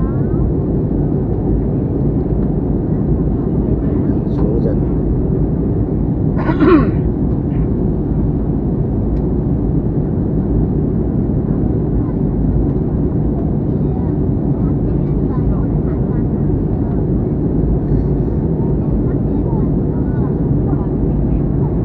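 A jet airliner's engines roar with a steady, low rumble inside the cabin.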